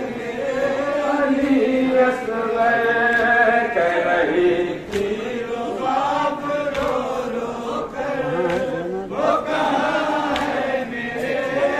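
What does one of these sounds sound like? A man chants loudly into a microphone, heard through a loudspeaker.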